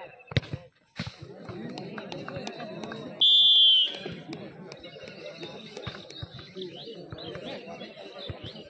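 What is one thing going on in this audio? A crowd of young men cheers loudly.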